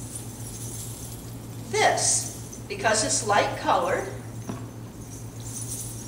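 Coins on a hip scarf jingle as an older woman shakes it.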